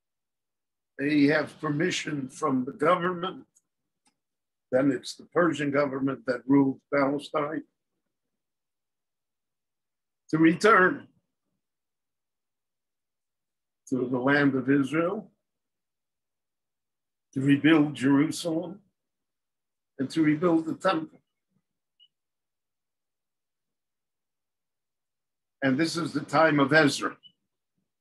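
An elderly man speaks calmly in short bursts with pauses, close to a microphone.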